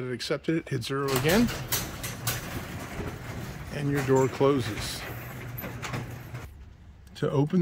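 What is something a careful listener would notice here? A garage door opener motor hums as a door rolls open.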